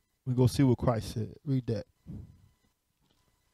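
A man speaks calmly into a microphone, reading aloud.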